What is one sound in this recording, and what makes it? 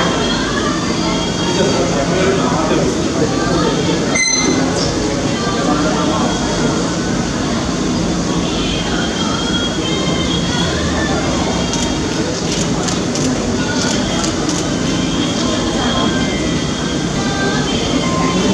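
A crowd of men and women murmurs quietly nearby.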